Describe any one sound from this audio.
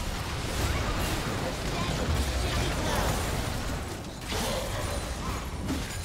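Fantasy spells explode and crackle in a busy game battle.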